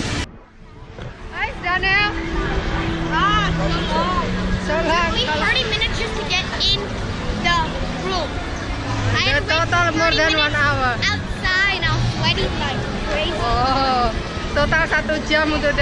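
A woman talks cheerfully close by.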